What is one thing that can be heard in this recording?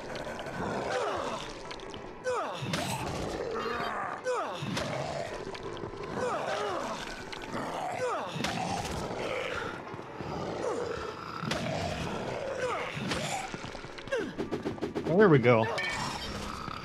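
A heavy club thuds into bodies again and again.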